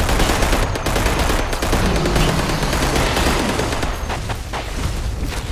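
An automatic rifle fires a burst.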